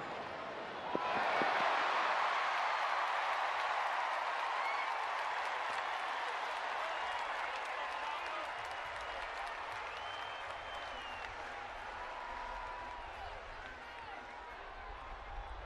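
A large crowd cheers and roars loudly outdoors, then slowly quiets.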